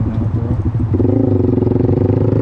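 A second motorcycle engine revs nearby.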